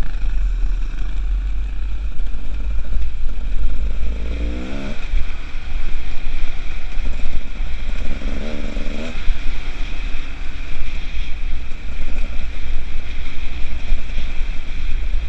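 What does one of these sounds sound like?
A two-stroke enduro motorcycle rides along a rocky dirt trail, its engine revving up and down.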